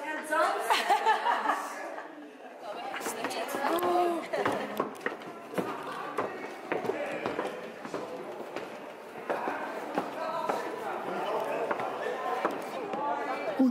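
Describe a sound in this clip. Young women chat with animation close by.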